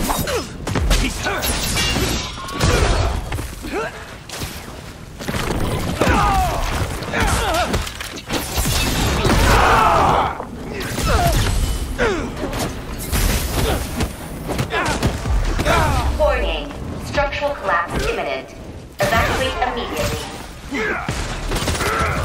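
Heavy blows and crashes land in quick bursts.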